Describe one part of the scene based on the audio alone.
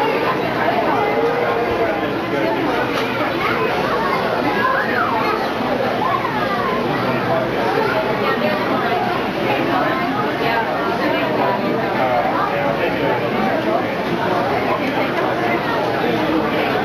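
A crowd of people chatters nearby in an echoing indoor space.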